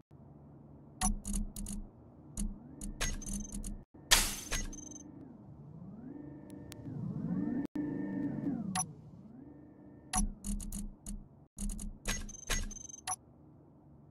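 Menu clicks tick quickly in bursts.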